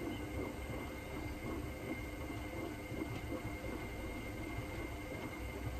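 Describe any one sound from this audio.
Water and laundry slosh inside a washing machine.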